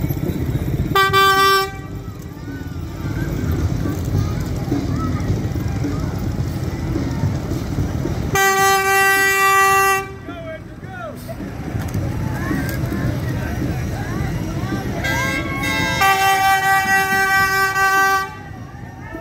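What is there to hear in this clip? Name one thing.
A truck horn blares loudly in long blasts.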